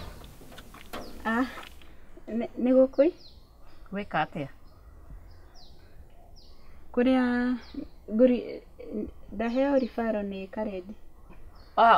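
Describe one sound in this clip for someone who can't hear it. A woman speaks calmly up close.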